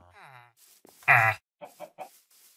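A villager character murmurs in a low, nasal grunt.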